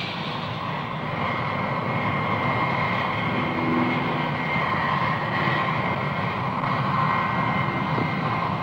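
A jet airliner's engines whine steadily as it rolls slowly past.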